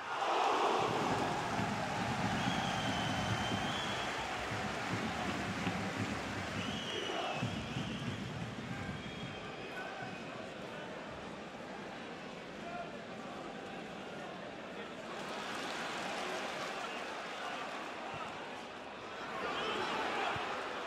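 A large stadium crowd chants and cheers throughout.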